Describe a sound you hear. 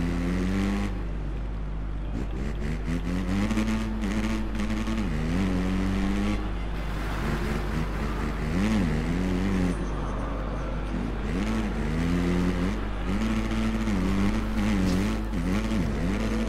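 A motocross bike engine revs and whines, rising and falling as it shifts gears.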